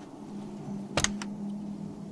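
A car boot latch clicks open.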